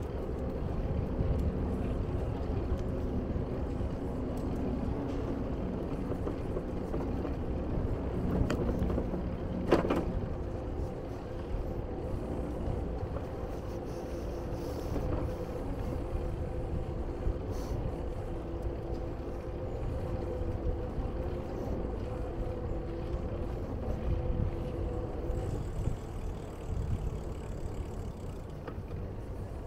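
Wind rumbles and buffets steadily.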